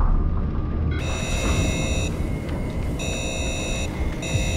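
An electric laser barrier hums and buzzes.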